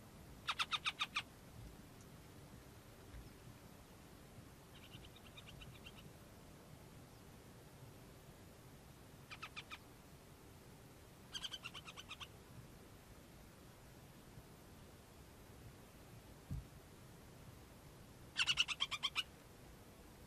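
A bird of prey gives bursts of rapid, chattering calls.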